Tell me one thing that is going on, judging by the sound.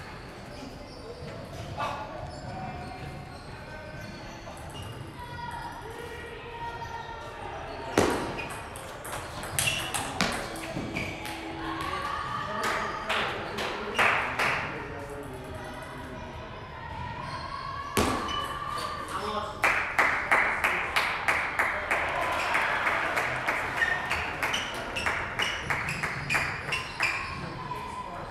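A table tennis ball clicks back and forth on paddles and table in a large echoing hall.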